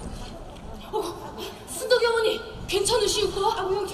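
A young actor speaks with feeling in a large echoing hall.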